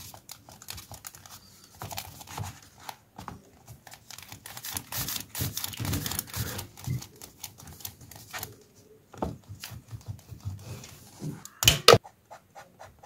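An eraser rubs back and forth on paper.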